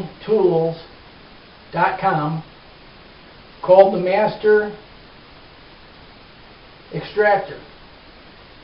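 A middle-aged man speaks calmly, close by, in short phrases with pauses.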